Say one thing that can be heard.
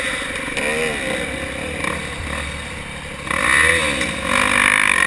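A dirt bike engine revs loudly up close, rising and falling in pitch.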